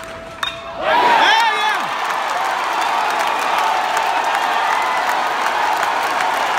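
A crowd cheers loudly and claps.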